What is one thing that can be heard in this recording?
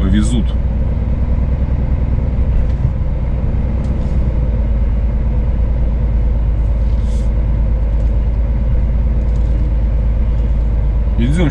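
Wind rumbles steadily over the open outdoors.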